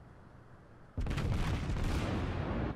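A shell explodes with a loud, rumbling boom.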